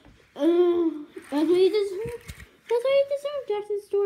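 A small toy car rolls across a carpet.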